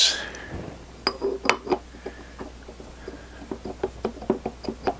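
Metal parts click and clink as a disc is fitted onto a shaft.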